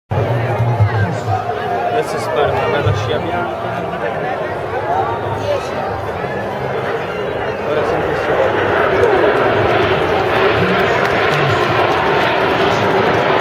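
Jet planes roar overhead in the distance.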